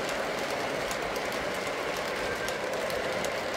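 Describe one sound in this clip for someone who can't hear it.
A model train rumbles along metal tracks with steady clicking of the wheels.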